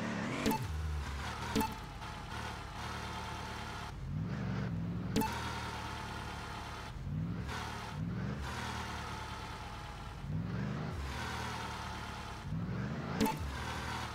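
Wooden planks knock and thump under tyres.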